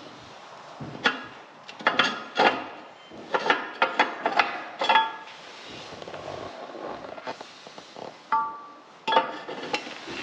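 A metal ash pan scrapes and clanks as it slides out of a fireplace grate.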